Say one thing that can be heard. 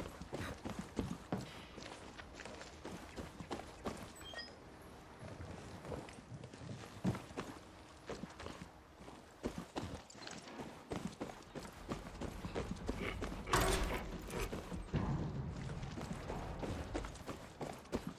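Footsteps tap on hard ground at a walking pace.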